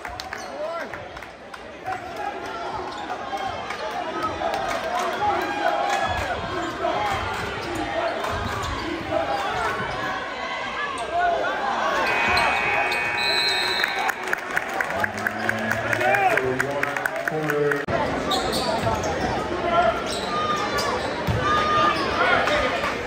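A large crowd cheers and chatters in a big echoing gym.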